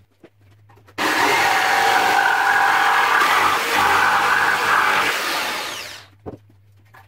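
An electric jigsaw buzzes loudly as it cuts through wood.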